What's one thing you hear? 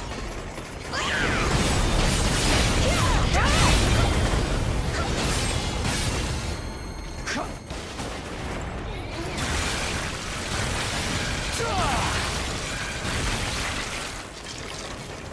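Heavy sword blows and explosions crash and boom in a fierce battle.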